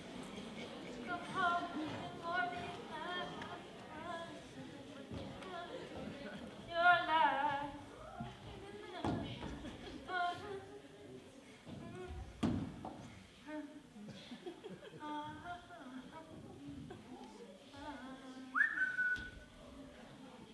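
A woman sings slowly on a stage in a large hall.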